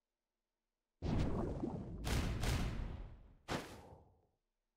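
Heavy rumbling and crashing game effects burst out.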